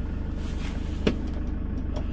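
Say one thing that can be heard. A switch on an overhead light clicks.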